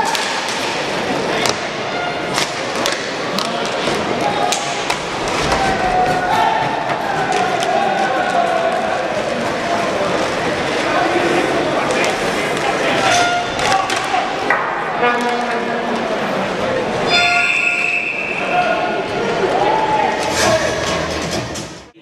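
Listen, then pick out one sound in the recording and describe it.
Hockey sticks click and clack against a puck.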